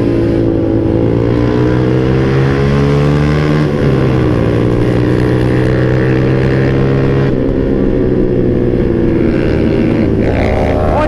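A motorbike engine hums steadily up close, its pitch shifting as it speeds up and changes gear.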